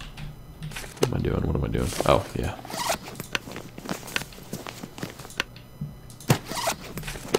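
A man talks casually into a close microphone.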